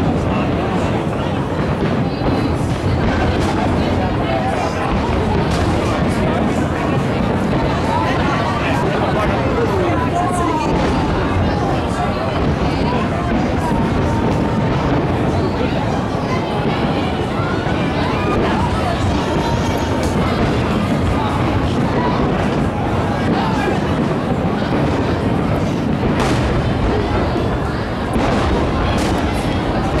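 Fireworks boom and crackle in the distance, outdoors.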